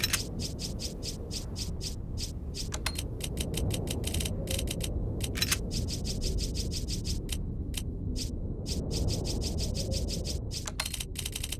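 A game menu cursor ticks rapidly.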